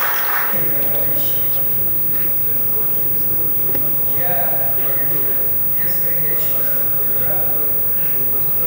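An elderly man speaks calmly into a microphone, heard through a loudspeaker in a large room.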